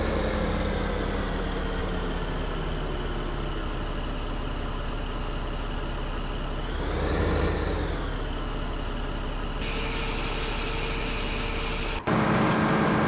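A tractor engine hums steadily and revs up briefly.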